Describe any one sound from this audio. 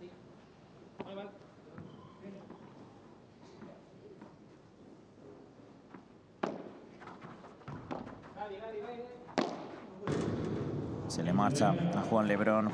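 Padel rackets strike a ball with sharp pops, echoing in a large hall.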